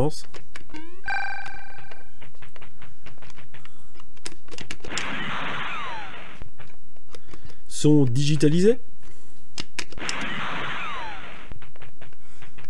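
Retro video game sound effects chirp and bleep.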